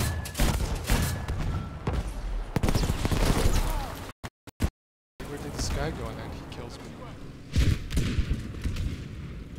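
Gunfire and explosions boom loudly close by.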